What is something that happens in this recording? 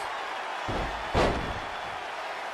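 A body slams heavily onto a wrestling mat with a thud.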